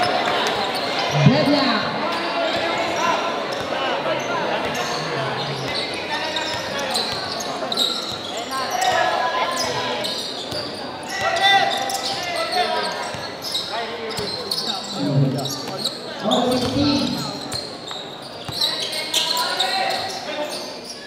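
A large crowd cheers and chatters.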